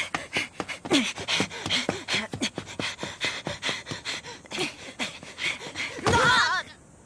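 Shoes slap quickly on hard paving as someone runs.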